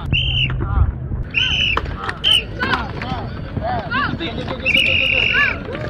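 Football pads clash and thump as players collide.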